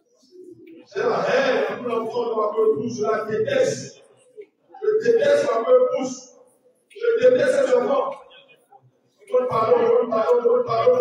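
A man preaches loudly into a microphone in an echoing hall.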